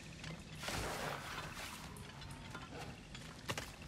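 Leaves and branches rustle as someone pushes through dense undergrowth.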